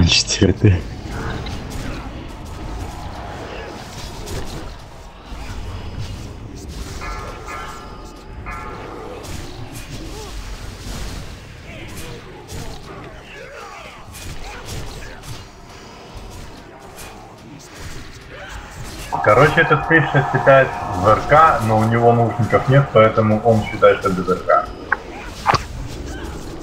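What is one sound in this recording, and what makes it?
Spell effects crackle and burst in a game battle.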